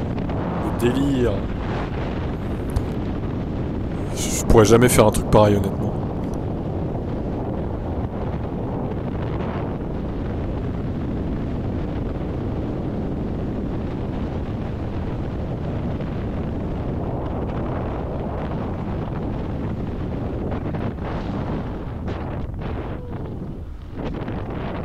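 Wind roars loudly and steadily past during a freefall.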